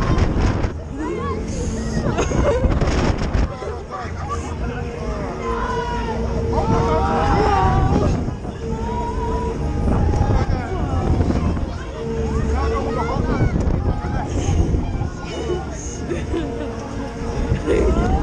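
A fairground ride rumbles and whirs as it spins fast.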